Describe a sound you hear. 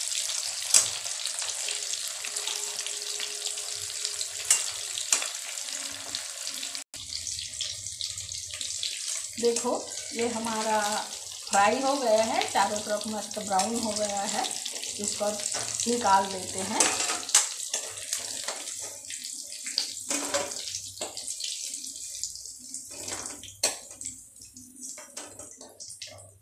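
Hot oil sizzles and crackles steadily in a pan.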